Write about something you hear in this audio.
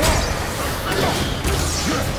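Fire bursts and roars in a blast.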